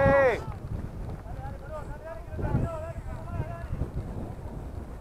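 Players call out faintly across an open field.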